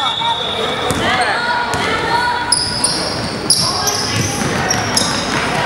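A basketball bounces on the floor in a large echoing hall.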